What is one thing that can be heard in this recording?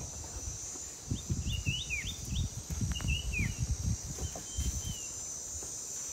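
An elephant tears and munches plants close by.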